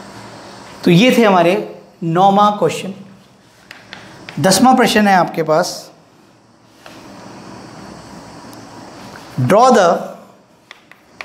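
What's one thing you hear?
A man speaks calmly and clearly, with pauses.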